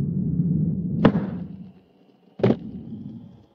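A skateboard clacks sharply.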